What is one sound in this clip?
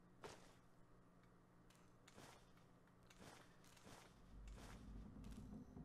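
Footsteps scuff softly on a hard floor.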